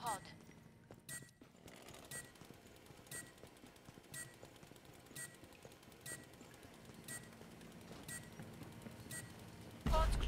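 A countdown timer beeps once every second.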